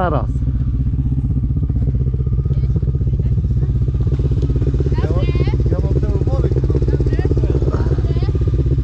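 A motorcycle engine idles with a steady, close rumble.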